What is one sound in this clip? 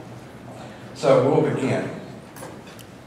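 A man speaks into a microphone in a large echoing room.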